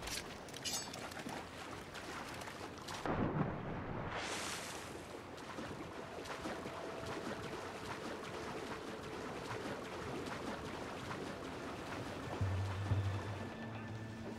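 Water splashes as a swimmer wades in and swims.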